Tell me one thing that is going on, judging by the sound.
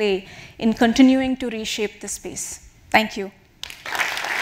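A woman speaks clearly through a microphone in a large hall.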